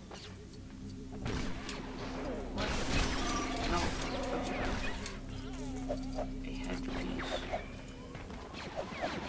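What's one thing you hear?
A lightsaber hums steadily in a video game.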